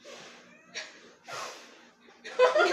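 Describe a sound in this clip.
A girl blows hard in short puffs.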